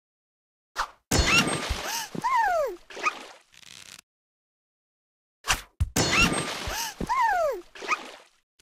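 A cartoon voice squeals with a falling pitch as a ball hits a target.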